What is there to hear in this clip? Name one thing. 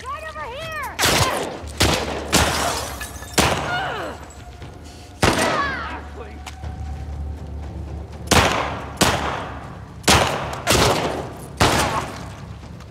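Pistol shots bang loudly, one after another, with a ringing echo.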